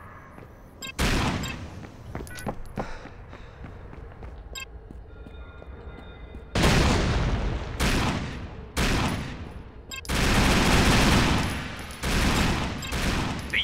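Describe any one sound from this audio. A rifle fires loud, booming shots, each followed by a long echoing roll.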